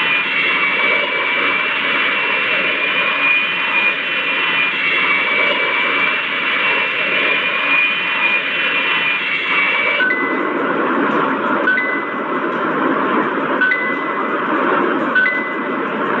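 Jet engines roar steadily in a mobile flight game.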